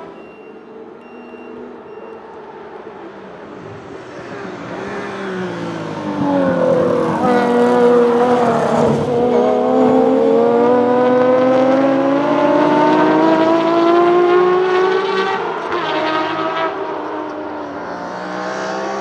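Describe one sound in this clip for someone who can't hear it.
A racing car engine roars closer, revving hard through the gears.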